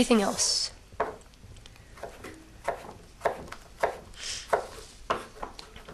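A knife chops with sharp, even knocks on a wooden board.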